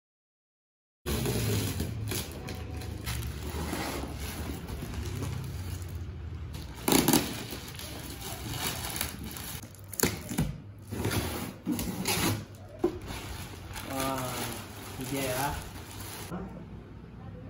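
Plastic wrapping crinkles and rustles as it is pulled off a box.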